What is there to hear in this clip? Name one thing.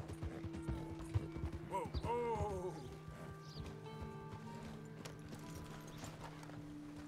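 A horse's hooves clop on the ground.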